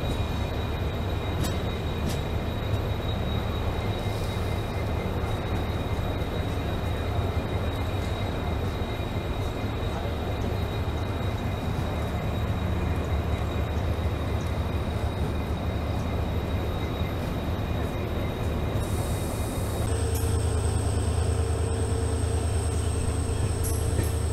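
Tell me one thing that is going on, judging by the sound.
Train wheels roll and rattle along the rails.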